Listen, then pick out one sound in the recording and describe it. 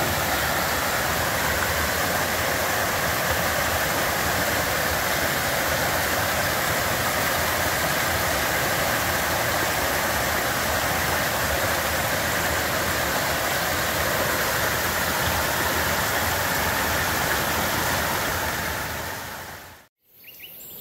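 A small waterfall splashes and rushes steadily over rocks.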